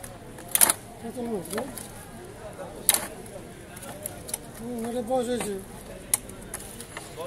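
A curved blade scrapes scales off a large carp.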